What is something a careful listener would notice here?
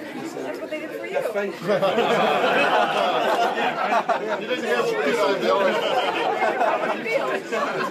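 A man talks and laughs cheerfully close by.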